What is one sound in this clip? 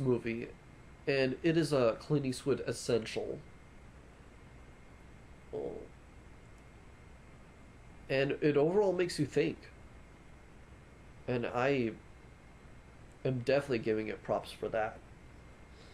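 A young man talks calmly close to the microphone, in short bursts with pauses.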